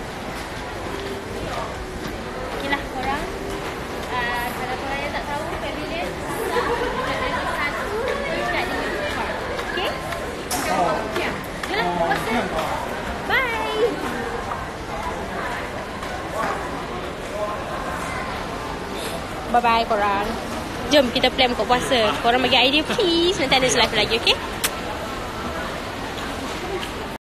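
A young woman talks and laughs close to a phone microphone.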